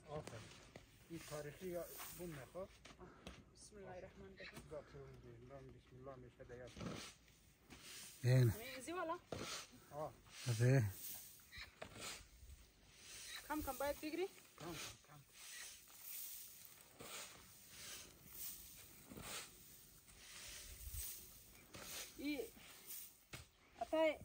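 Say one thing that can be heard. A shovel scrapes through loose grain.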